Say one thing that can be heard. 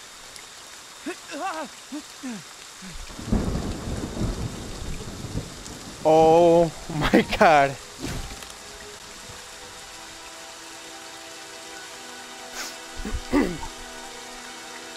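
A young man talks and exclaims with animation, close to a microphone.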